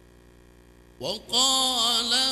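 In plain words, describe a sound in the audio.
A man begins to chant in a drawn-out, melodic voice through a microphone.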